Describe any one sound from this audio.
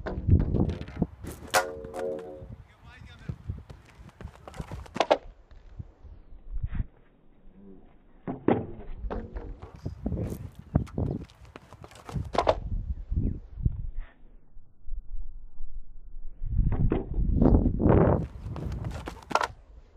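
A pole vaulter lands on a padded mat with a dull thud.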